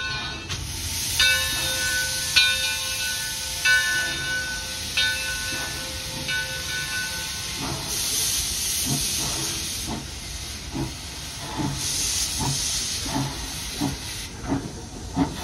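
Steam hisses loudly from a locomotive's cylinders.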